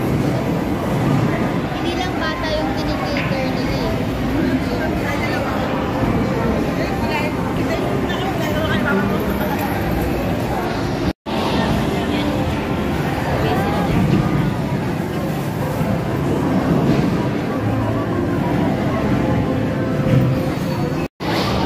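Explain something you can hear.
A crowd of people chatters in a large, noisy hall.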